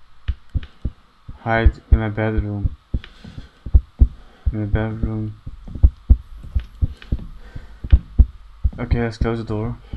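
Footsteps knock on a wooden floor at a steady pace.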